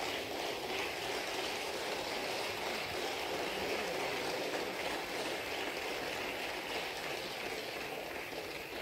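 A crowd murmurs and stirs in a large echoing hall.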